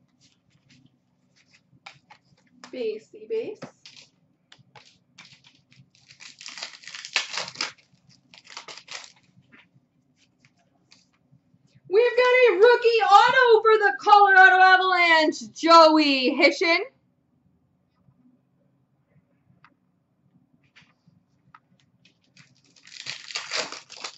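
Plastic card wrappers rustle and crinkle in hands.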